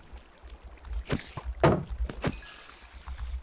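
Quick sword blows thud against a creature.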